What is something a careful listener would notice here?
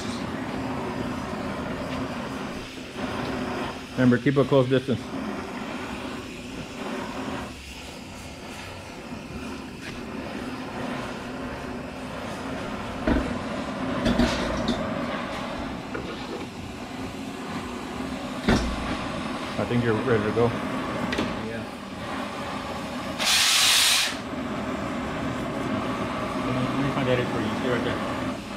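A cutting torch hisses and roars steadily.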